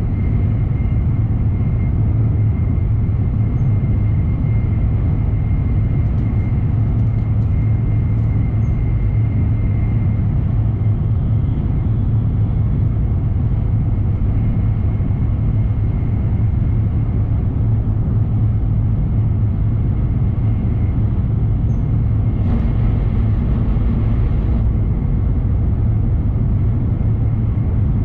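A train hums and rumbles steadily from inside the carriage.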